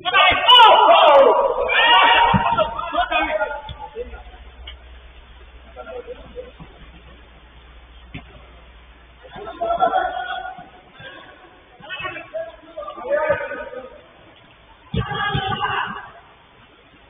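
Young men shout and call out to each other across an open space.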